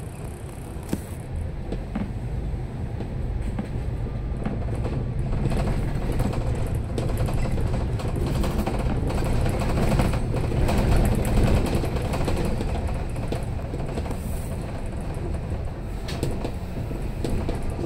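A bus engine revs and grows louder as the bus pulls away and drives on.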